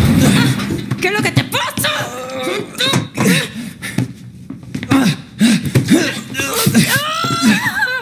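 A woman shouts in distress.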